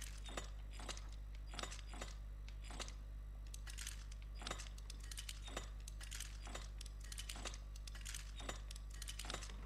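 Metal dials click as they turn, one notch at a time.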